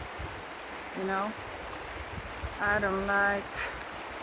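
A woman speaks close by, outdoors in light wind.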